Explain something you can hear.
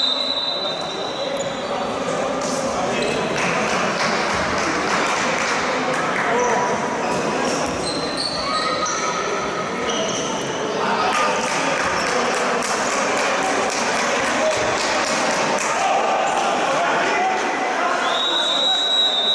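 Sports shoes squeak on an indoor court.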